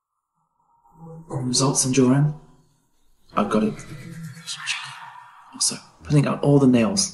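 A young man talks on a phone, close by.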